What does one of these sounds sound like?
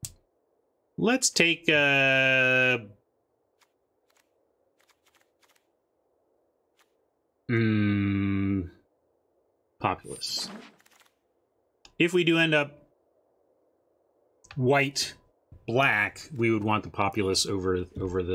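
A man talks with animation close to a microphone, with long drawn-out words.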